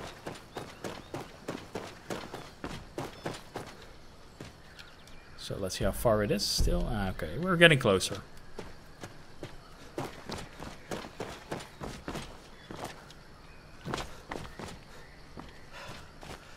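Footsteps crunch steadily over grass and gravel.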